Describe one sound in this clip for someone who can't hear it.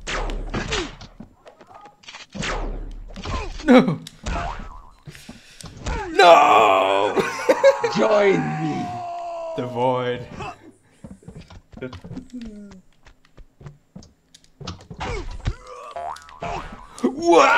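Cartoonish fighting sounds thump and pop as small figures brawl.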